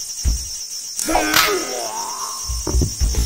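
A sword strikes a body with a sharp hit.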